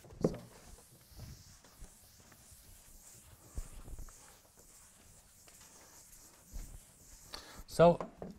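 A cloth wipes a board.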